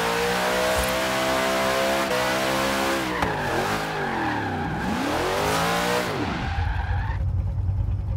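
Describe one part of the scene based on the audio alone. Tyres screech as a car drifts and skids.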